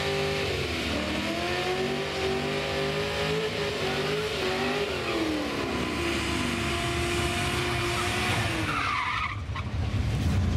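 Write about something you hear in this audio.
A car engine revs hard and loud.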